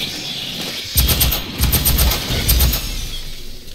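A rifle fires in rapid, booming bursts.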